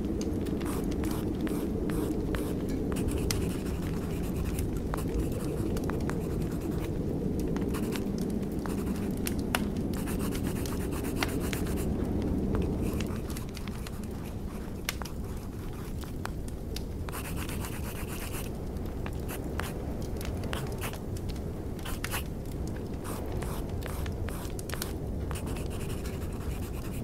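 Fires crackle and pop steadily.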